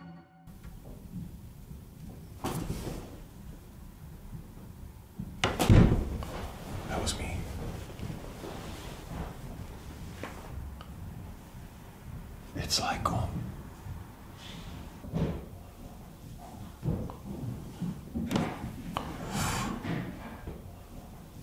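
A second man answers, talking nearby.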